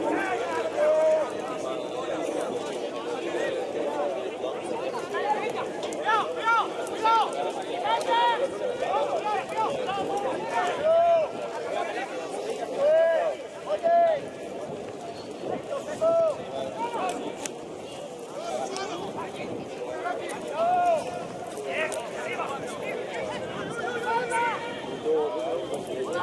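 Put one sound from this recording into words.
Young men shout to each other across a wide open field.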